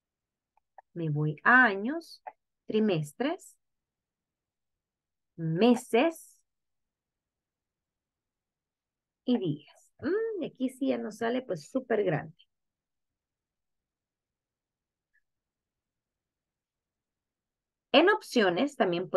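A young woman speaks calmly through a microphone, in short phrases with pauses.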